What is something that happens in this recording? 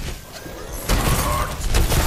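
An explosion bursts nearby.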